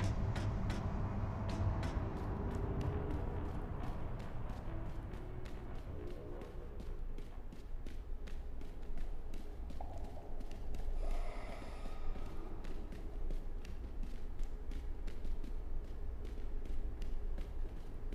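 Footsteps tap quickly and steadily on a hard floor.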